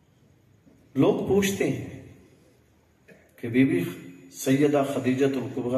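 An elderly man speaks into a microphone in a slow, preaching tone, heard through a loudspeaker.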